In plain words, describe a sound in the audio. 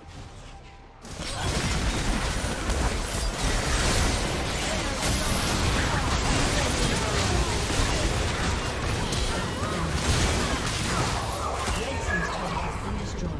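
Game spell effects crackle and burst in a busy fight.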